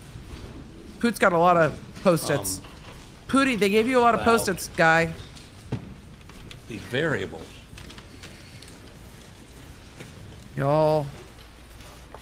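A man speaks in short bursts through a microphone in an echoing hall.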